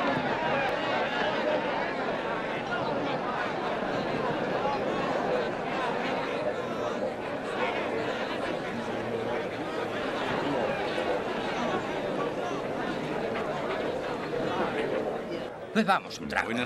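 A crowd of men chatters loudly all around.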